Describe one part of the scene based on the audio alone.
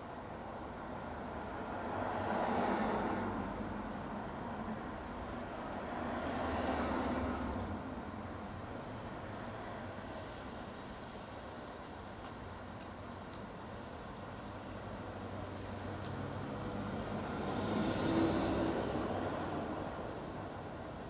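Cars drive past close by, swelling and fading.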